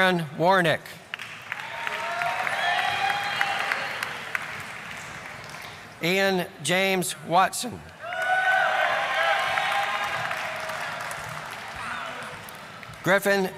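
People applaud in a large echoing hall.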